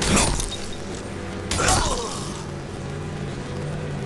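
Electricity crackles and buzzes sharply.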